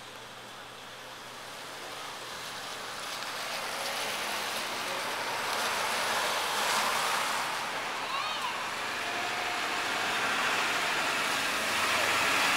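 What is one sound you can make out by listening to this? Cars drive past on a wet street.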